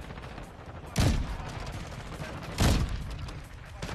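A rifle fires with loud booming shots.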